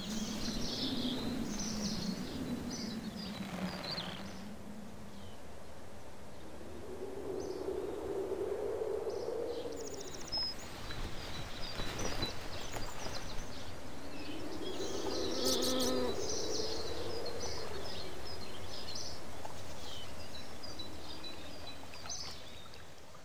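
A stream of water flows and splashes.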